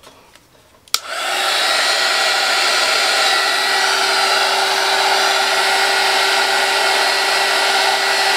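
A heat gun blows with a loud, steady roar and whine.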